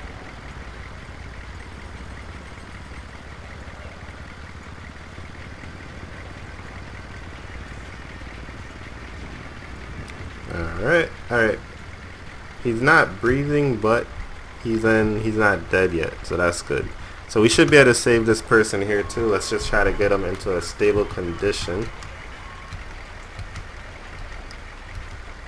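A vehicle engine idles steadily nearby.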